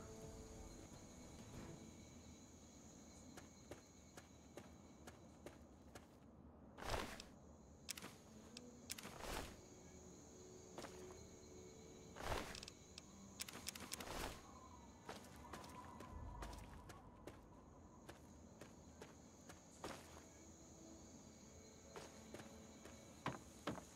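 Footsteps crunch on dirt and gravel.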